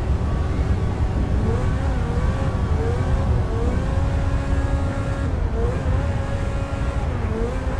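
Tyres rumble steadily on a road.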